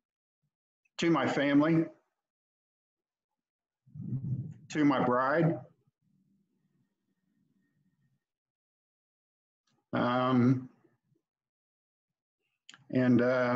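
A man speaks calmly in short bursts, heard through an online call.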